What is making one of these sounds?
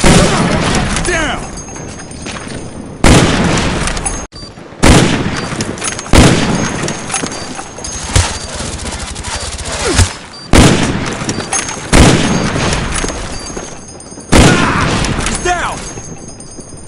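Sniper rifle shots crack loudly, each followed by a rolling echo.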